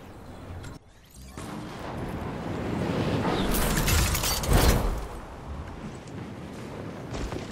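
Wind rushes past during a fall through the air.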